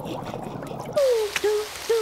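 Water sprays from a shower.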